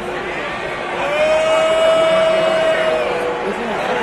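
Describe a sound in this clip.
Crowd members hold a long loud chant.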